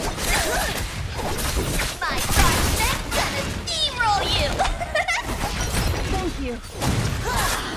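Sword blows and magic blasts crash and whoosh in a fight.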